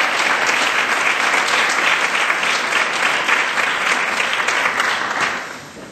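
An audience applauds loudly in a large echoing hall, then the applause fades.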